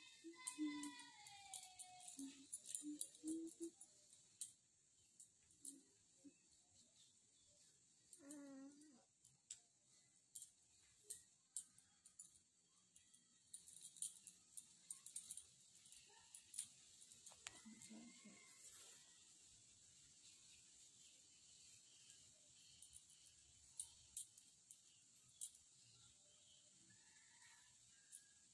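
Bangles clink now and then.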